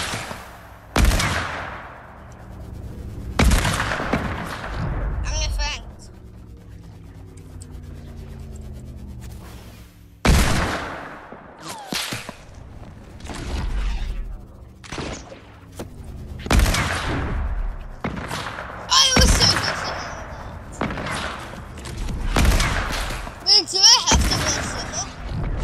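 A pickaxe whooshes through the air and strikes with sharp hits.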